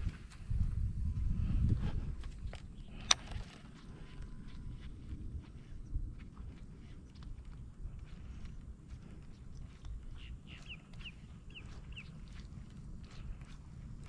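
Wind rumbles across an open lake.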